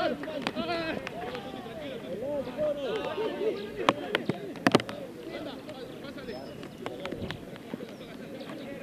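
Several young men shout and call to each other across an open outdoor field.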